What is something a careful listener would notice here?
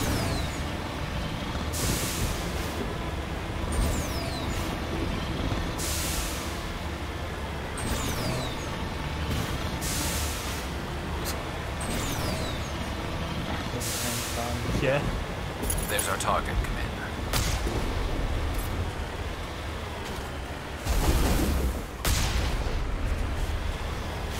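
Water splashes and sprays under rolling wheels.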